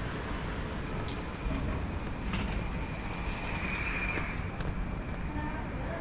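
A scooter passes by close.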